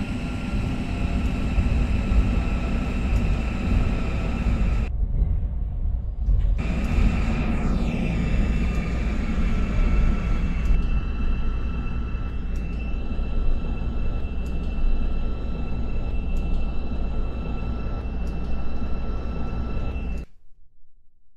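A train rumbles steadily along the tracks with a low droning hum.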